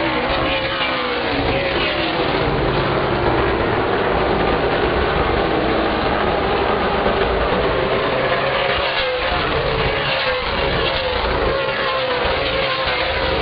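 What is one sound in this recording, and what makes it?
A car engine's whine rises and falls in pitch as it passes close by.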